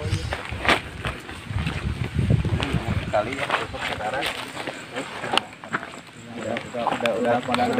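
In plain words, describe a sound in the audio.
Footsteps crunch on loose stones and dirt.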